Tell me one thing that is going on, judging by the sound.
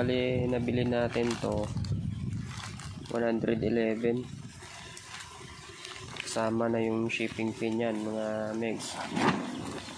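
A plastic mailer bag crinkles and rustles as it is handled.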